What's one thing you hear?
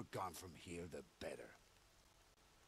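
A man speaks firmly and coldly, close by.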